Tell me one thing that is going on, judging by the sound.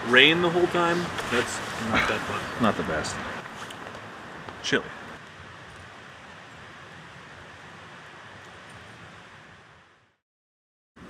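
A campfire crackles softly outdoors.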